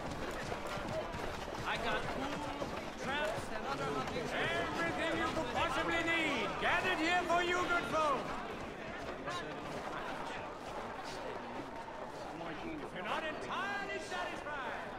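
Footsteps hurry over cobblestones.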